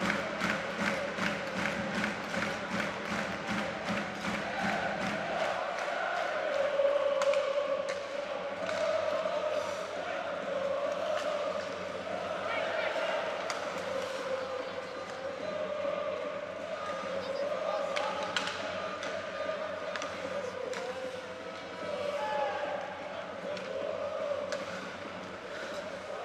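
Ice skates scrape and carve across the ice.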